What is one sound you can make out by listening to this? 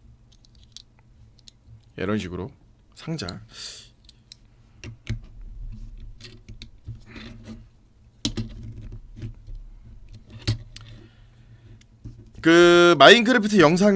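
Small plastic bricks click and rattle as they are handled.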